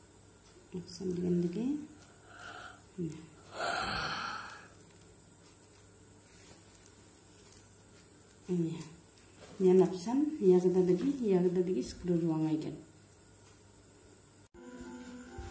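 Plastic strips rustle and click as they are woven by hand.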